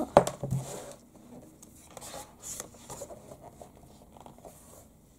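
Glossy magazine pages rustle as a hand turns them.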